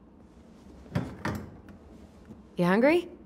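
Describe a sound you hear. A refrigerator door pulls open with a soft thump.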